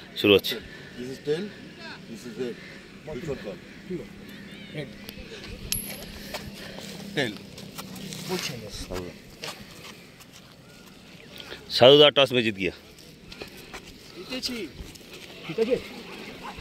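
Middle-aged men talk calmly close by outdoors.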